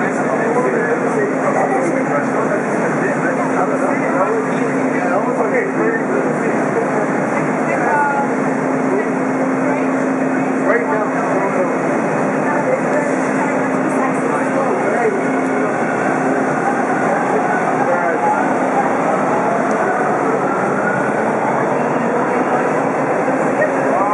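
Train wheels screech against the rails.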